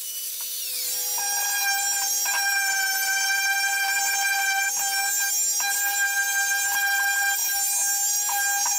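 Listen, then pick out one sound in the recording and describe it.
A power sander hums with a steady high whine.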